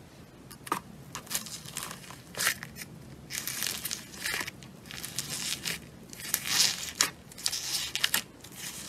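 Fingers press into a slime full of foam beads, which crunch and pop.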